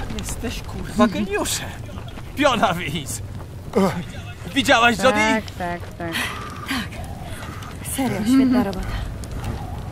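A man speaks with animation close by.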